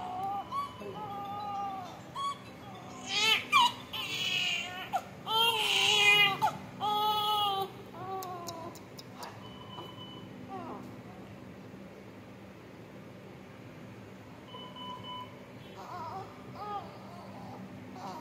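A newborn baby cries loudly nearby.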